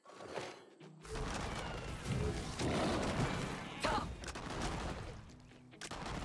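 A fiery spell bursts with a crackling whoosh.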